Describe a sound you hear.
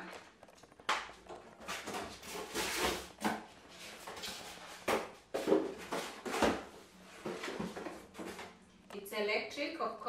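Cardboard and paper rustle and crinkle as packaging is handled.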